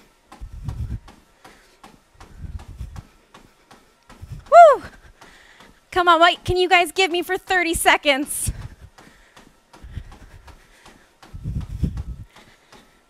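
Running feet thud steadily on a treadmill belt.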